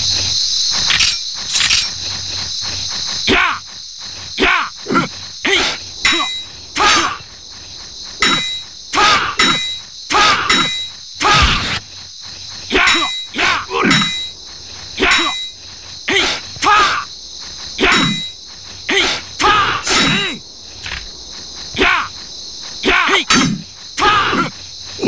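Blades clash with sharp metallic rings.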